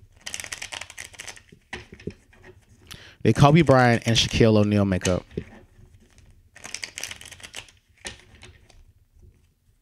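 Playing cards shuffle with a quick riffling rustle.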